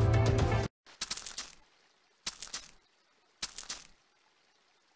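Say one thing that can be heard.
Footsteps tread on soft ground.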